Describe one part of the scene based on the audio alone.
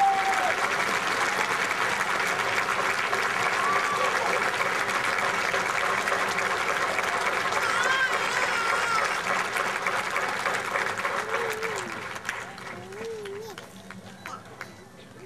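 A large outdoor crowd cheers and shouts loudly, then fades down.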